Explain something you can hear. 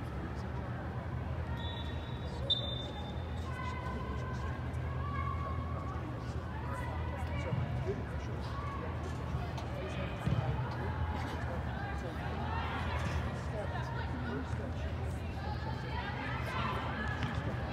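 Young women shout to each other across a large echoing hall.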